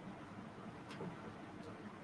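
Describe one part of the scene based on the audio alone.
A metal chain clinks softly as it is handled.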